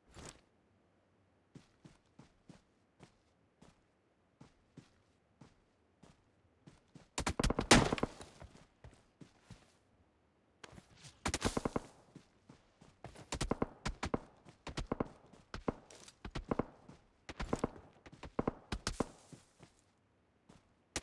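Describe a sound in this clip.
Footsteps rustle through grass and bushes.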